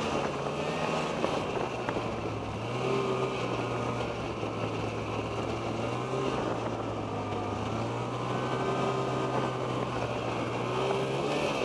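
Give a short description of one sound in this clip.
A snowmobile engine drones steadily up close, rising and falling slightly in pitch.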